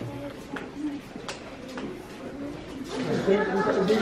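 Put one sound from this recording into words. Footsteps echo in a narrow passage.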